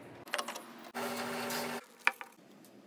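A drill press whirs as it bores into plastic.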